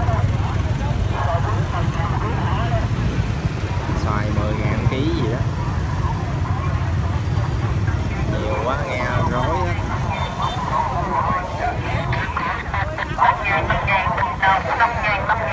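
Motorbike engines hum and putter close by.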